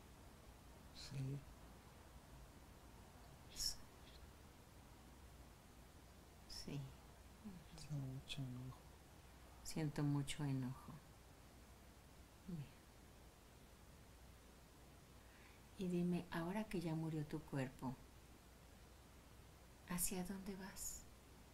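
A middle-aged woman speaks softly and calmly close by.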